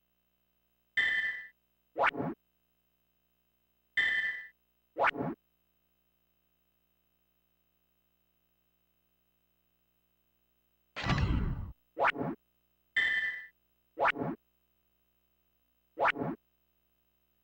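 Short electronic blips and whooshes sound as a game puzzle's pieces turn.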